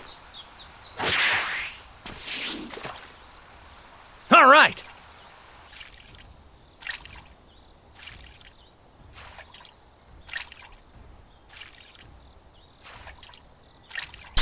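A tail splashes into water.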